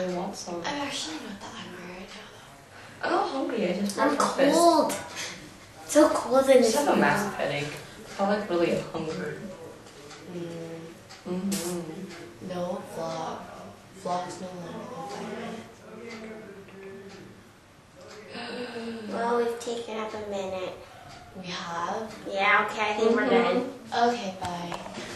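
A teenage girl speaks calmly close by.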